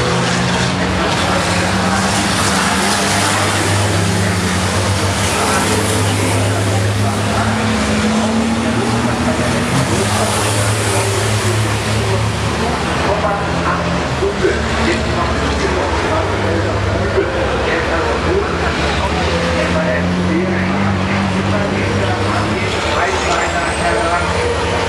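Racing truck engines rise and fall in pitch as the drivers change gear.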